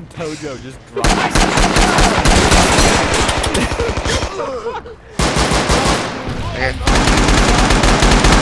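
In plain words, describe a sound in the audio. A machine gun fires rapid bursts close by.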